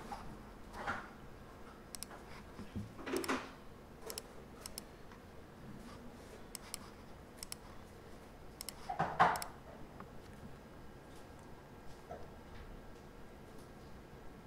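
A computer mouse clicks now and then.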